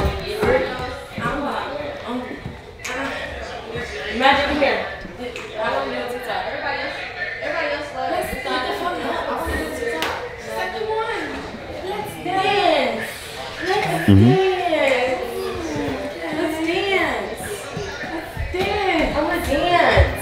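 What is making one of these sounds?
Young women chatter and exclaim in a nearby room.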